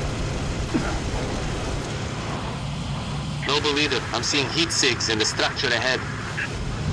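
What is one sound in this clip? A mounted gun fires rapid bursts.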